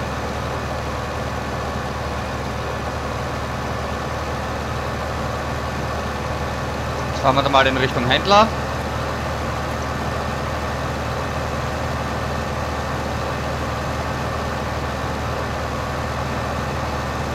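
A tractor engine drones steadily as it drives along.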